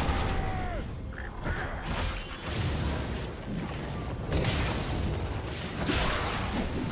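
Video game spell effects whoosh and crackle in bursts.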